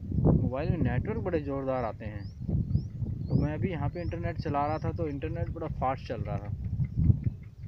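A young man talks close to a microphone, outdoors.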